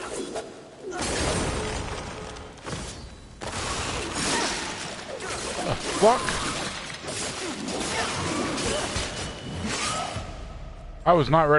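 A sword slashes and clangs in a fight.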